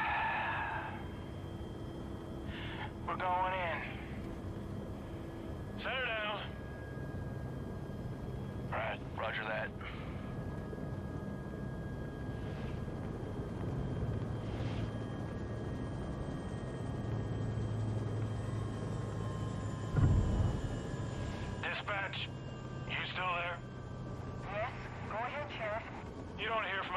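A helicopter engine hums steadily.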